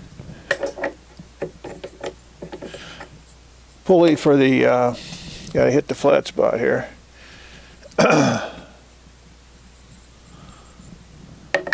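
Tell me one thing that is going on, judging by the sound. Metal parts clink and scrape as they are handled.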